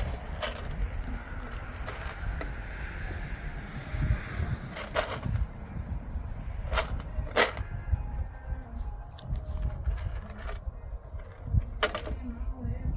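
Tools clink and rattle on a truck tailgate.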